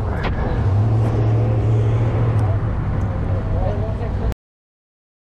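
Adults chat faintly nearby.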